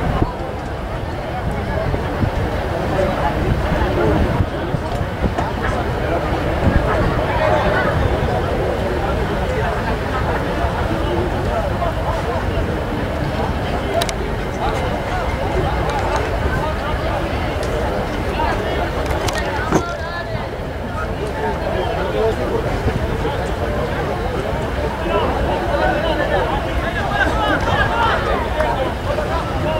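A crowd of spectators chatters and calls out at a distance outdoors.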